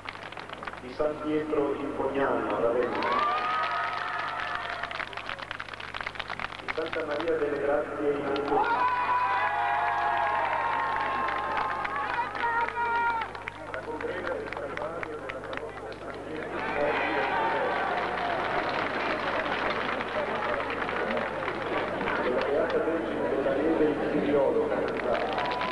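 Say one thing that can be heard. A large crowd sings together loudly outdoors.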